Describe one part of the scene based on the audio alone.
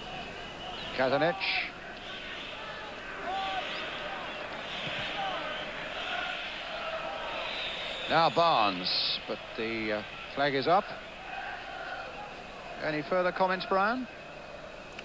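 A large crowd roars and chants in a stadium.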